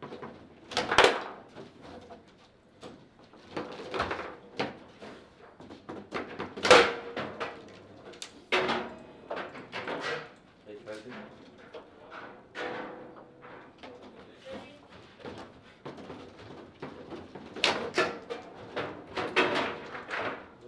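A ball smacks hard against the sides of a foosball table.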